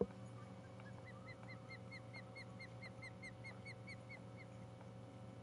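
A fishing reel clicks softly as line winds in.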